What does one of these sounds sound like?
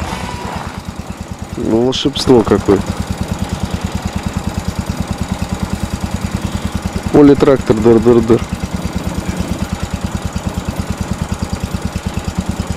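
A small engine idles with a steady, rapid chugging.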